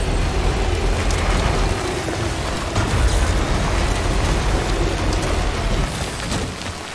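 A truck engine rumbles as it climbs over rough ground.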